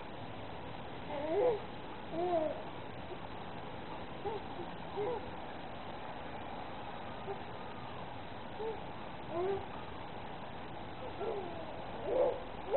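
A baby babbles and coos close by.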